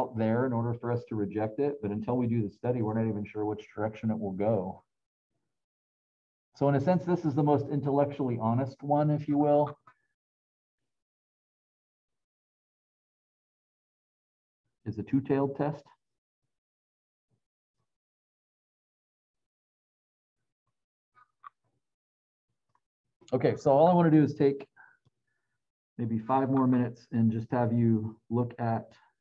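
A middle-aged man speaks calmly through a microphone over an online call, pausing now and then.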